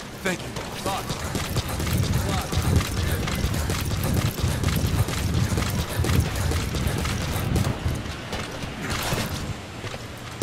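Boots run quickly on a hard metal deck.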